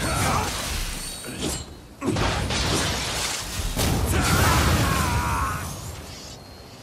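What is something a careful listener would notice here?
A sword slashes and clangs against armour.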